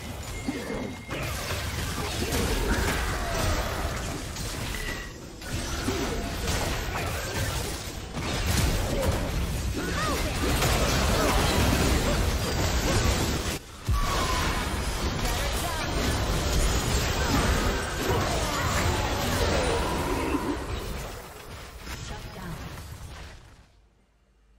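Game spell effects and blasts crackle and boom in a fight.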